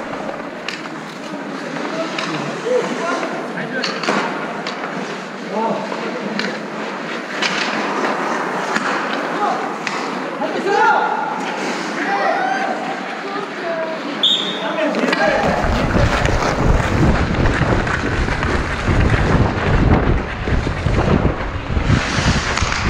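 Ice skates scrape and hiss on an ice rink.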